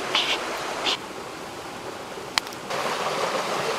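Burning wood crackles in a fire.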